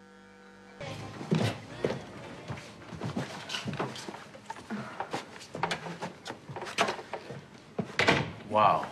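Footsteps walk on a wooden floor.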